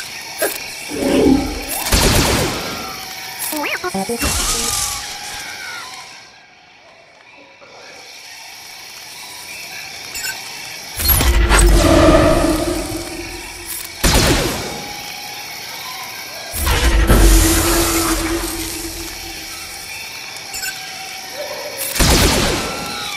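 Blasters fire and impacts crash in a game battle.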